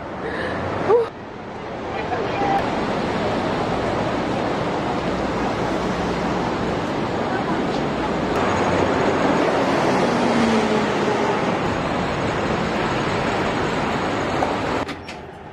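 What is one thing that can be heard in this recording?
Street traffic murmurs steadily outdoors.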